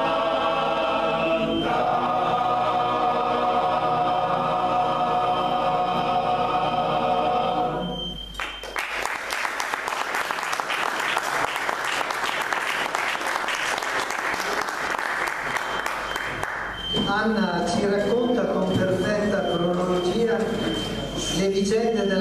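A men's choir sings together in harmony.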